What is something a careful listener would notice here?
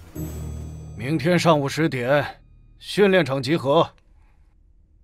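A man speaks in a low, calm voice.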